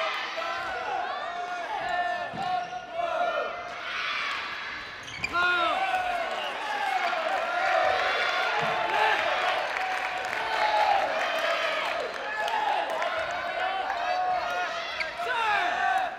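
Sneakers squeak sharply and often on a hard floor in an echoing hall.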